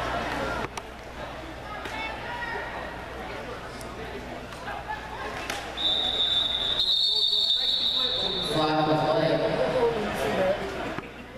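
A crowd murmurs and calls out in a large echoing hall.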